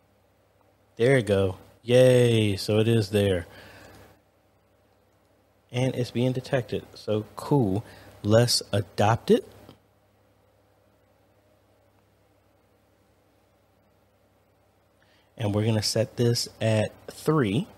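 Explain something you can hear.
A man talks calmly and closely into a microphone.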